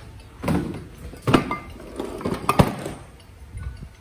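A heavy metal motor casing is set down on a bench with a dull knock.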